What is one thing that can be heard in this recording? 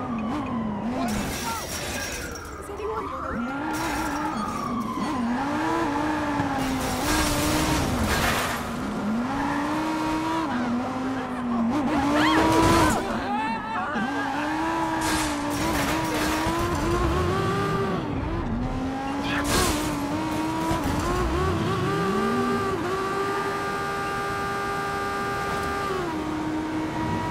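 A car engine revs up and down.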